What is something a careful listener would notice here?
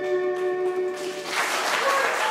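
Acoustic guitars strum along.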